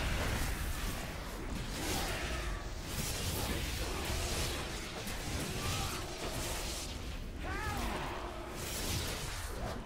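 Swords and spells clash and crackle.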